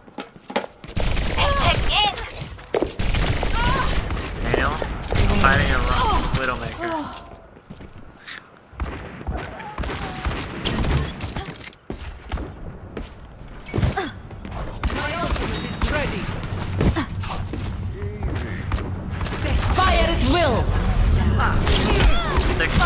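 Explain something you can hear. Pistols fire rapid shots.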